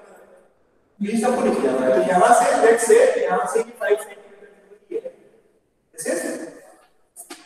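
A young man speaks with animation, close by.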